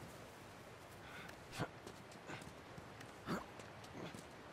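A person scrambles up over a rock with scraping and thuds.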